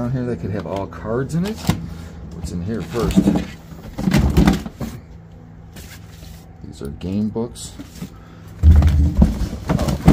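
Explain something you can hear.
Items rattle and knock as they are moved around in a cardboard box.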